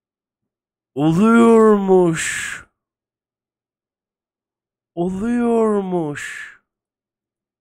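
A man calls out in long, drawn-out exclamations into a close microphone.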